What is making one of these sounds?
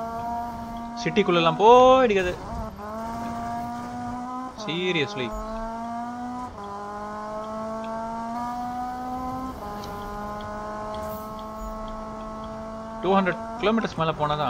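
Tyres screech loudly in short bursts as a car slides.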